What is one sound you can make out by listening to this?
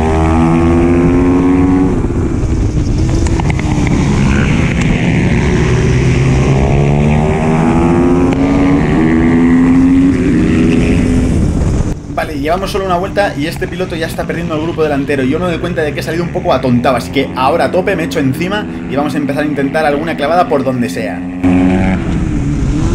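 A motorcycle engine revs loudly up and down close by.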